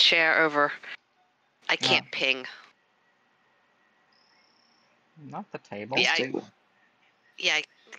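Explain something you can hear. Adult men talk with animation over an online call.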